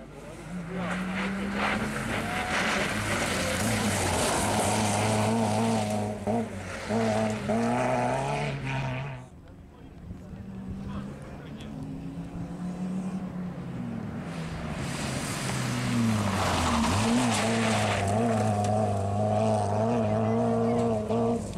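Tyres crunch and spray over loose gravel.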